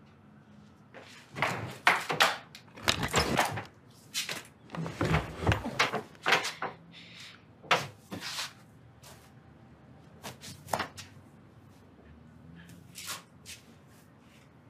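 Bedding rustles as it is handled.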